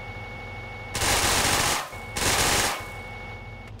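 A heavy machine gun fires rapid, loud bursts.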